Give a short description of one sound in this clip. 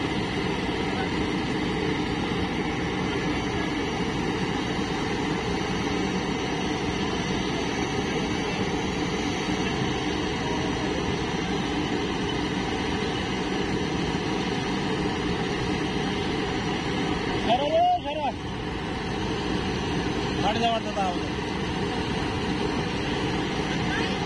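A digger's engine drones nearby.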